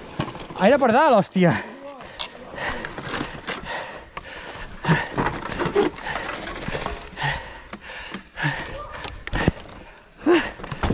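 Bicycle tyres crunch and roll over a rocky dirt trail.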